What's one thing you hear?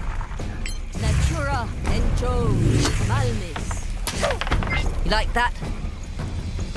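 A magic spell shimmers and whooshes with rising, chiming tones.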